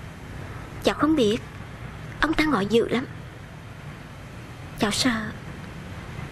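A young woman speaks close by in a tearful, pleading voice.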